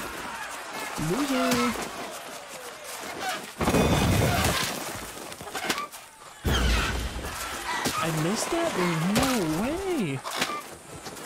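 Roosters squawk and screech as they fight.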